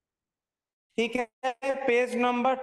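A young man speaks calmly into a microphone, heard through an online call.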